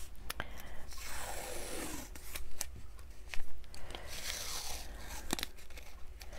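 Sticky tape is pulled off a roll with a ripping sound.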